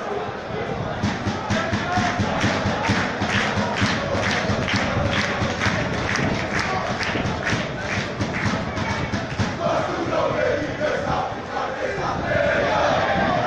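Spectators clap in a steady rhythm.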